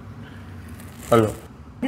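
A man answers a phone with a short word, speaking quietly and close.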